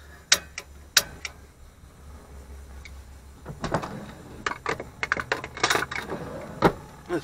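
A gas flame hisses softly.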